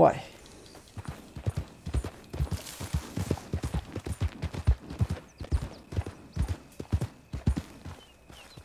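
A horse's hooves thud steadily on dirt.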